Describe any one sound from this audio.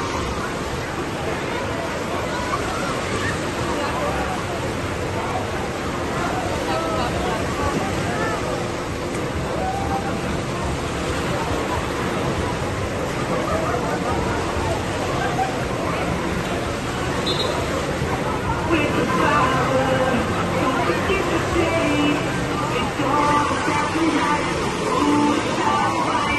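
Waves crash and churn in a pool.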